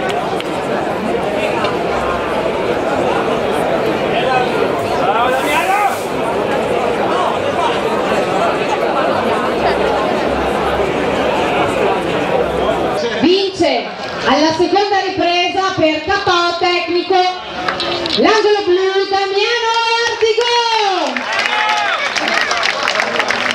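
A crowd cheers and chatters.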